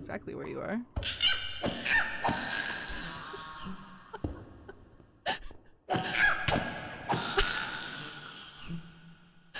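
A creature grunts in pain as it is hit.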